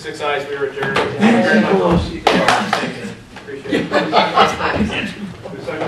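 A man speaks calmly into a microphone in a large room with some echo.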